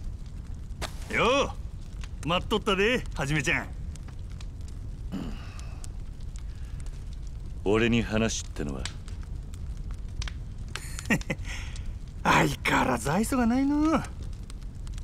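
A man speaks in a teasing, drawn-out voice, close by.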